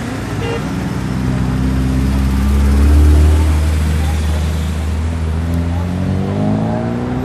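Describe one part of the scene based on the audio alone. A car engine idles close by.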